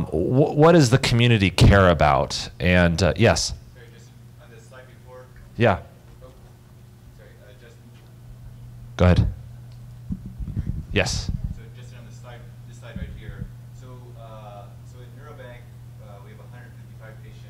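A man speaks calmly through a microphone, presenting.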